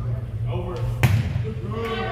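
A volleyball is struck with a sharp smack in a large echoing gym.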